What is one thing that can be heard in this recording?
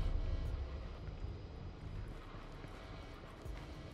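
Footsteps tread on a hard floor.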